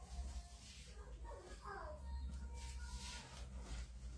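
Paper rustles as it is peeled off a back.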